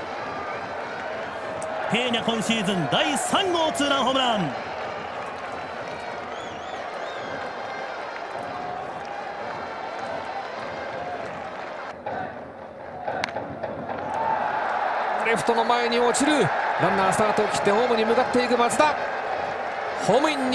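A large crowd murmurs throughout a stadium.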